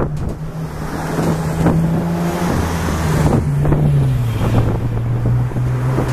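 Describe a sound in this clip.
A car drives past on a nearby road.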